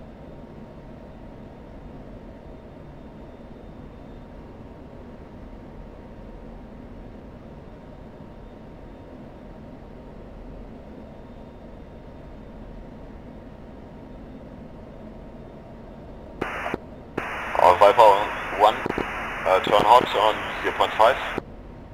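A jet engine drones steadily in a cockpit.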